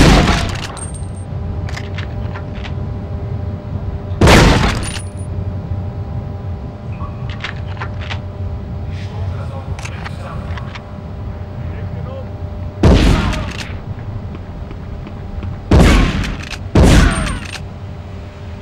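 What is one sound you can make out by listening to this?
A shotgun fires loud blasts that echo.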